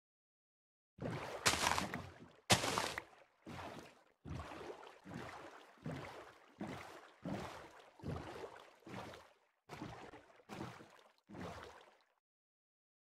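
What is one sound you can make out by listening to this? Wooden paddles splash through water in a steady rhythm.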